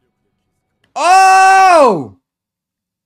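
A young man exclaims loudly in surprise with a long drawn-out cry.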